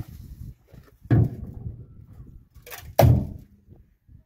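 A trowel knocks against concrete blocks.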